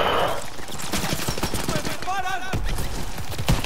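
A rifle fires sharp shots nearby.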